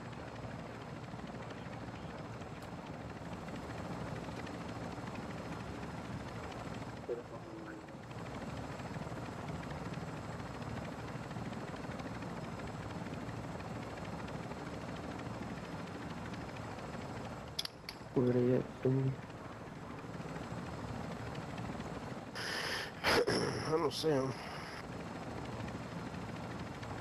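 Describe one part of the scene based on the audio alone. A helicopter's rotor thrums as it flies.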